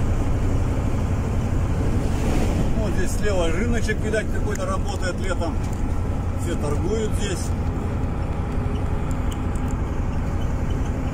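A vehicle engine drones steadily from inside the cab.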